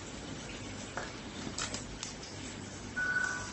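Plastic rustles and clicks as a pump is fitted to a bag valve.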